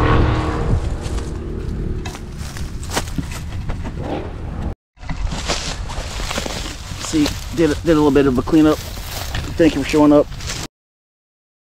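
Dry grass rustles and crackles close by as a dog moves through it.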